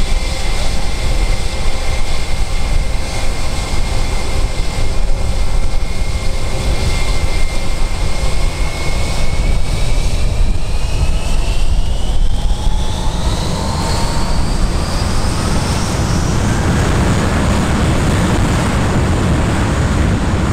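A jet engine whines loudly close by, its pitch rising as it spools up into a roar.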